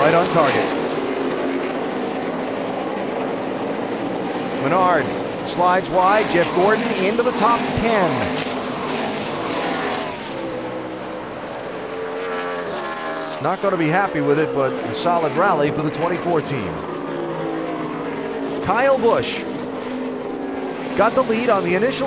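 Racing car engines roar at high speed, rising and falling in pitch as the cars pass and shift gears.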